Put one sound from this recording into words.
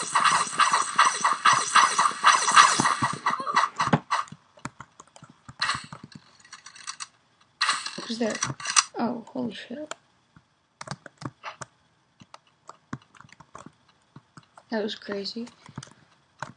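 Footsteps patter quickly along the ground.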